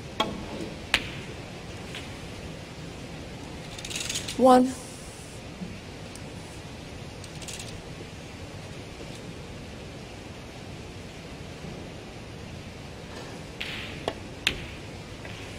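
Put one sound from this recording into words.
Snooker balls click together on the table.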